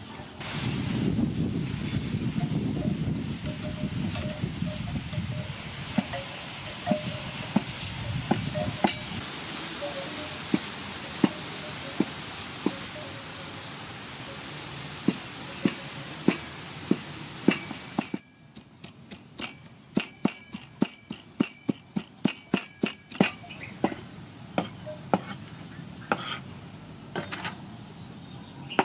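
A cleaver chops tomatoes on a wooden board with sharp knocks.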